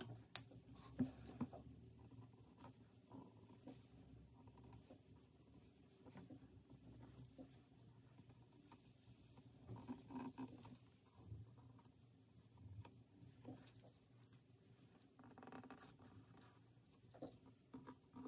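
A fine pen scratches softly along paper.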